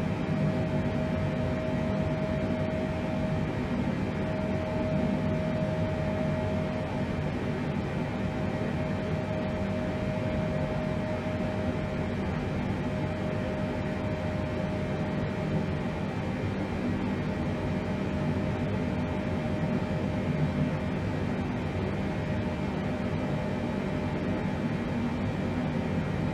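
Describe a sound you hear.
Jet engines drone steadily in a low, even roar.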